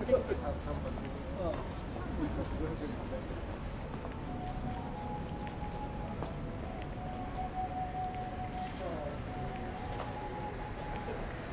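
A crowd of people murmurs nearby.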